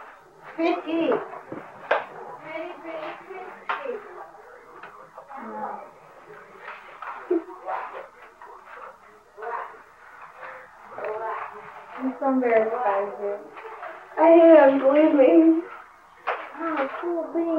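Several women talk and laugh nearby.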